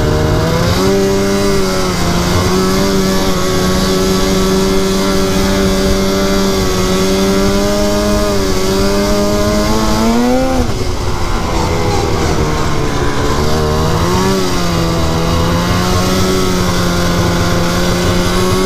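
A snowmobile engine drones steadily, its pitch rising and dropping as the throttle changes.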